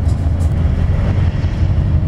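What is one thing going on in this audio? A bus rumbles past close by.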